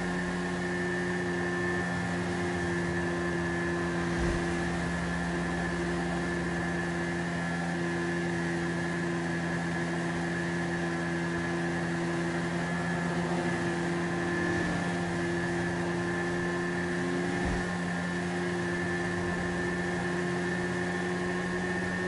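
A motorcycle engine hums steadily as it cruises along a road.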